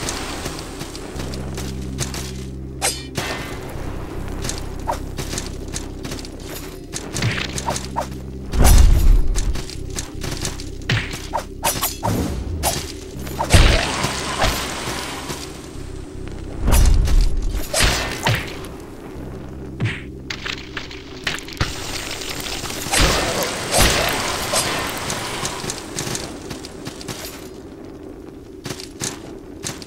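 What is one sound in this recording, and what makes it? Low ominous music hums and pulses throughout.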